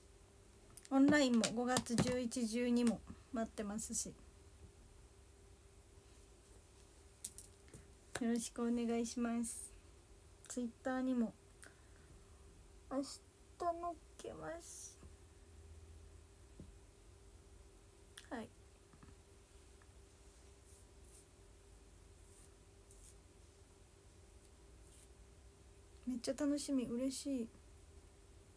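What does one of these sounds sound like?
A young woman speaks softly and closely into a microphone, in short bursts.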